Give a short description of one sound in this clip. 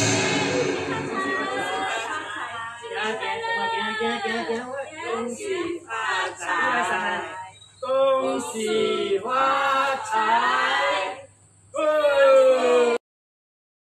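A group of women and a man call out a greeting together, close by.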